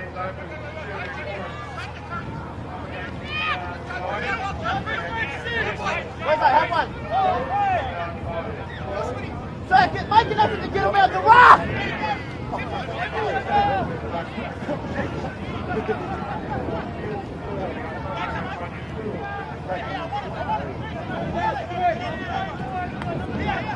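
Young men shout and call to each other across an open field outdoors.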